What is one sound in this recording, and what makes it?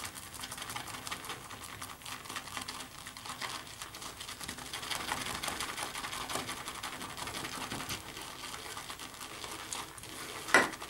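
A brush swirls and squelches in a bowl of shaving soap.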